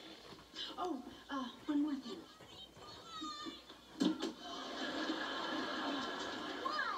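A television plays in the background.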